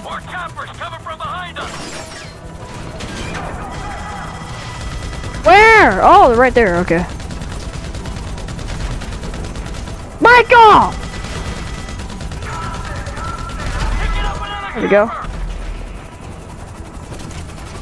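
A helicopter's rotor thuds and hums steadily.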